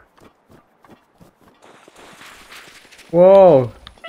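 Footsteps run on grass in a video game.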